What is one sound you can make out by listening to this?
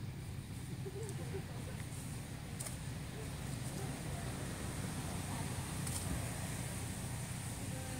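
A small monkey scrabbles and scratches against tree bark.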